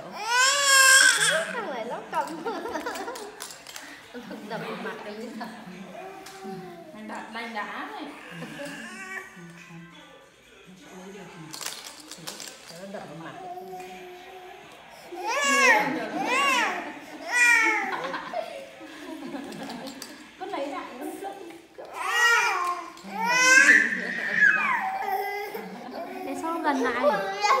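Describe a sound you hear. A toddler squeals and babbles loudly nearby.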